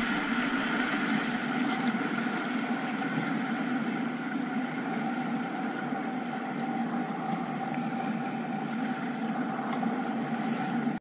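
Rushing river water roars steadily close by.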